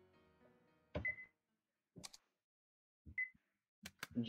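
A short electronic beep sounds as a menu choice moves.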